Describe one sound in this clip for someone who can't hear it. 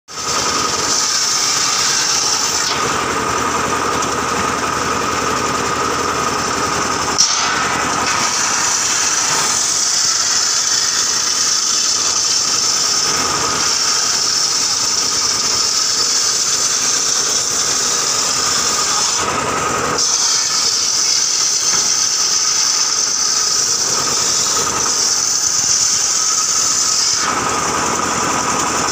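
A circular saw screams loudly as it cuts through timber.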